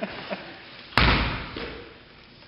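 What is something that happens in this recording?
A ball bounces once on a wooden stage floor.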